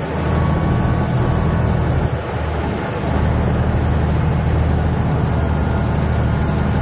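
A boat engine rumbles loudly and steadily.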